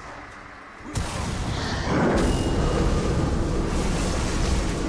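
A heavy stone structure crashes and crumbles with a loud, deep rumble.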